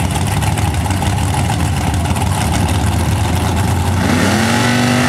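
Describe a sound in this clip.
Powerful race car engines idle with a deep, lumpy rumble.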